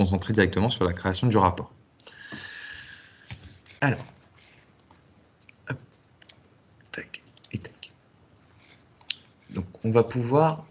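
A young man speaks calmly into a microphone, heard close up.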